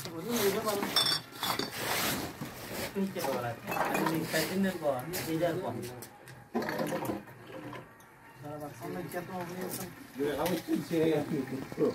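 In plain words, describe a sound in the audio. Glass bottles clink against each other as they are handled.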